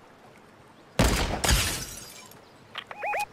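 A sniper rifle fires a loud shot that echoes away.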